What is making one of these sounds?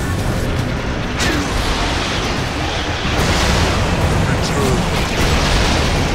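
Spell effects crackle and burst in a game battle.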